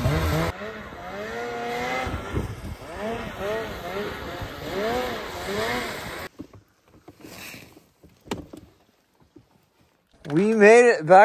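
A snowmobile engine whines and revs, rising and falling in pitch.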